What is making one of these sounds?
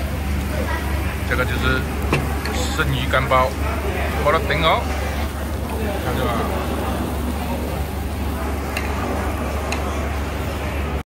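Food sizzles softly in a hot clay pot.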